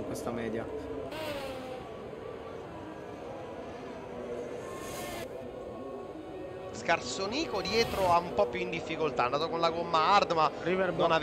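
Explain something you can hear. A racing car engine roars and whines as the car speeds along a track.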